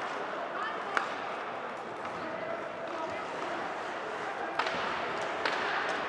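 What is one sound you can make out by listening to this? A hockey stick cracks sharply against a puck a few times.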